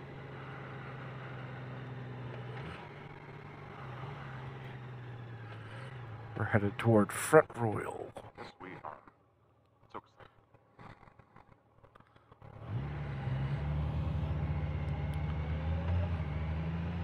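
A motorcycle engine hums steadily, falls quiet, then pulls away louder.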